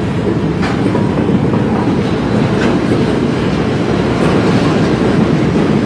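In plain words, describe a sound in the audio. Freight train wagons rumble steadily past close by.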